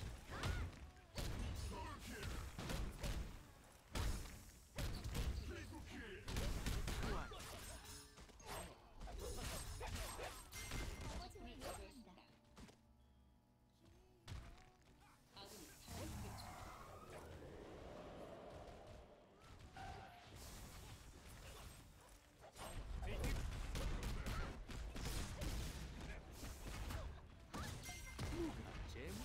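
Explosions boom and crackle in quick bursts.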